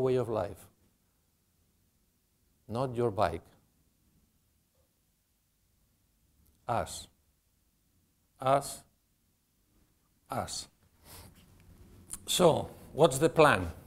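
A man speaks calmly through a microphone, with long pauses.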